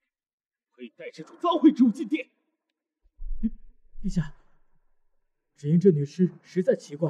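A young man speaks firmly.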